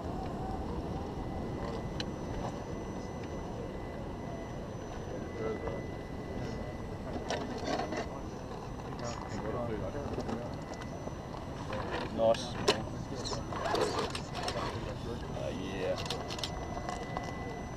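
A small toy truck's electric motor whirs as it climbs over rock.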